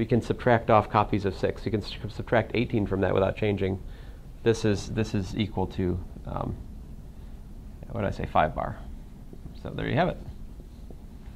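A man speaks calmly and clearly, as if explaining, close by.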